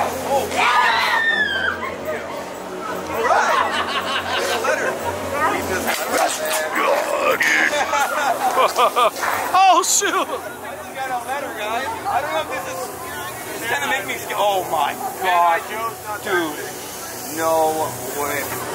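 Young women talk and shriek excitedly nearby.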